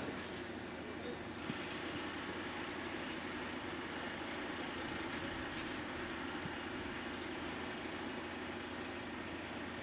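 A crane's motor hums steadily.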